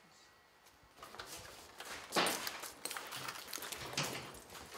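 Footsteps and rustling sound on a wooden floor.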